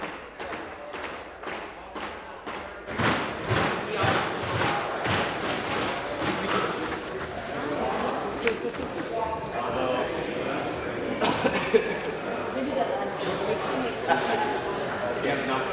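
A crowd of men and women murmurs and chatters.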